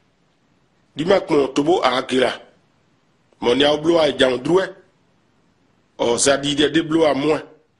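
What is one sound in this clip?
A man speaks calmly and clearly, close by, in short phrases with pauses.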